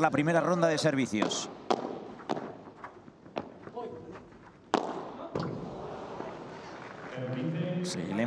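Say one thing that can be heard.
Padel rackets strike a ball with sharp hollow pops.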